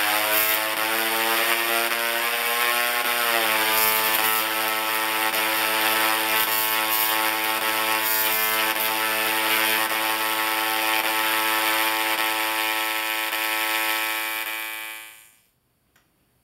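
Electric sparks buzz loudly with a harsh, steady musical hum, then cut off abruptly.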